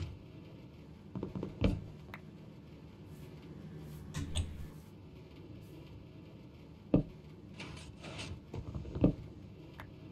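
Short knocks sound as blocks are placed.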